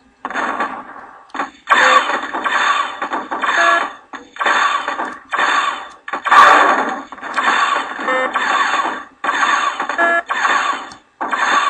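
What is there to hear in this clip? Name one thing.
Game gunfire rattles rapidly.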